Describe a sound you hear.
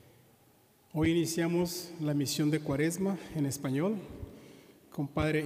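A man sings through a microphone in a large echoing hall.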